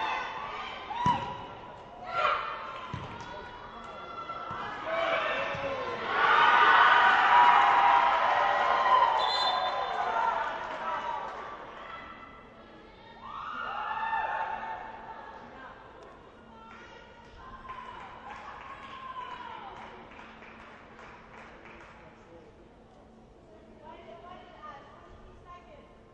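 Players' shoes squeak on a hard court in a large echoing hall.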